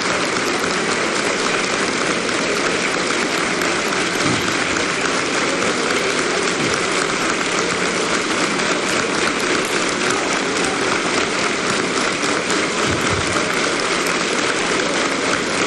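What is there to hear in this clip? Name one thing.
A large crowd applauds loudly and steadily in a large echoing hall.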